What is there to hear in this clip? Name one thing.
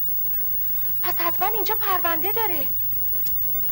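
A woman speaks with urgency up close.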